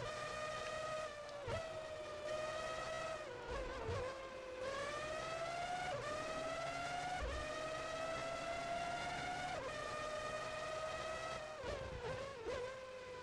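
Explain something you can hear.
A racing car engine drops in pitch as it slows down.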